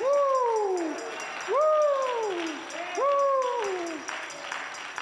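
A man shouts out with feeling in a large echoing hall.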